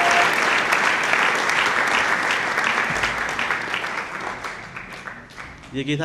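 A crowd claps loudly in a large hall.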